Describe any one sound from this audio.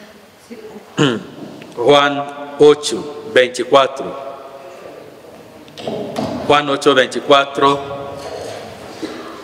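A man sings in a steady chant into a microphone.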